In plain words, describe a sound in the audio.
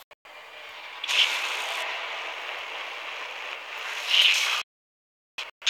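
An energy weapon fires with a loud, crackling electric hiss.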